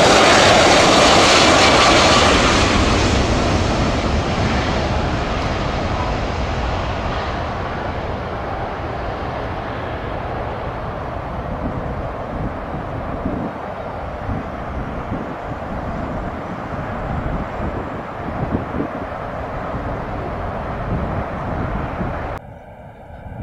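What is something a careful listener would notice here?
A jet airliner roars loudly as it lands and then slowly fades into the distance.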